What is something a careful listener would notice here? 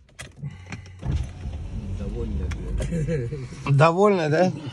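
A car engine rumbles, heard from inside the car.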